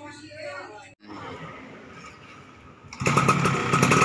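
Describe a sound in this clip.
A man kick-starts a two-stroke underbone motorcycle.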